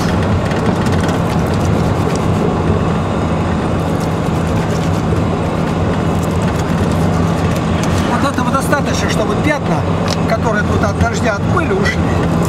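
Fabric rustles as a man handles a bag.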